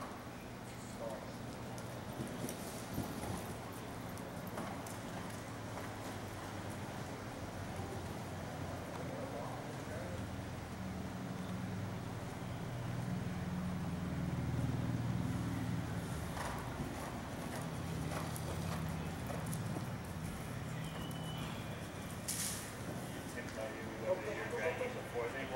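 Hooves thud on soft dirt as a horse canters.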